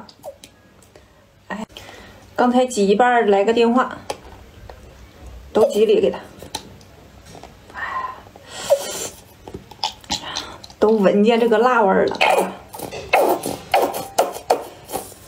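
Thick sauce squirts and squelches from a squeeze bottle onto noodles.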